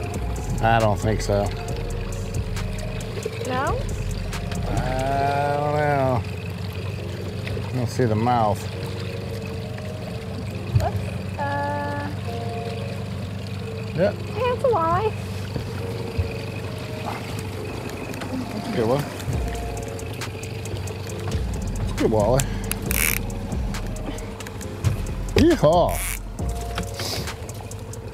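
A boat motor hums steadily.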